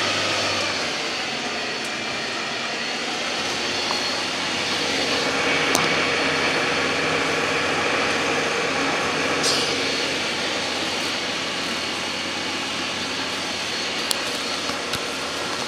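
Rain patters against the windows.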